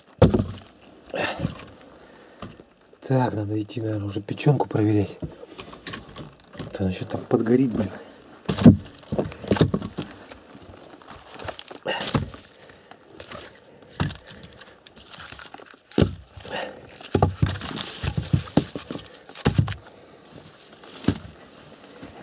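Wooden logs knock and clunk as they are moved about by hand.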